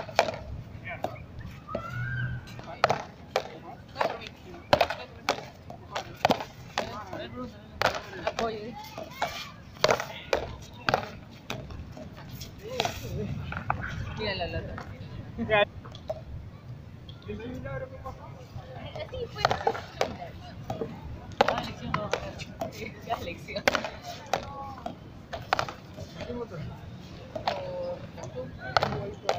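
A rubber ball smacks sharply against paddles and a wall, over and over.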